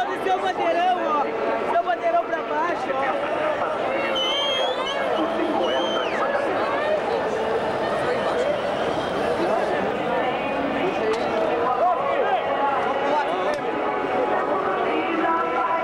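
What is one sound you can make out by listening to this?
A large stadium crowd chants and cheers loudly outdoors.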